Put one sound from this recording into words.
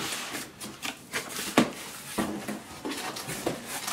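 Cardboard box flaps scrape and thump as they are pulled open.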